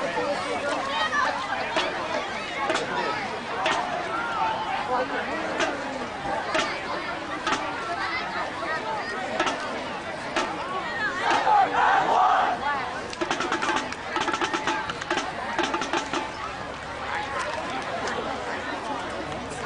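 A crowd of people chatters and calls out nearby outdoors.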